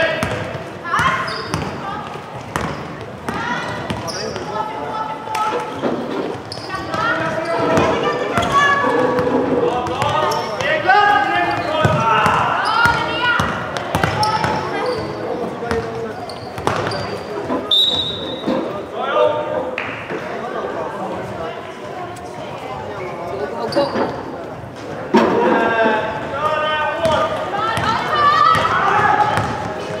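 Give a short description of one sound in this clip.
Young women shout and call to each other in an echoing hall.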